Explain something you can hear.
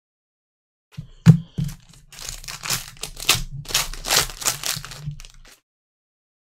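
Cards slide and click against each other.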